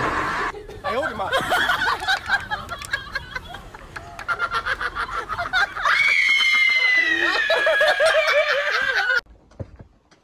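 A young woman shrieks excitedly.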